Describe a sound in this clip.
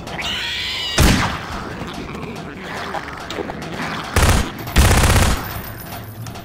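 Gunshots fire in short bursts, loud and sharp.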